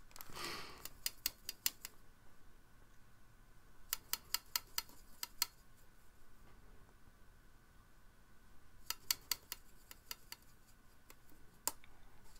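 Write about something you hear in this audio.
A paintbrush taps and clicks against a plastic palette.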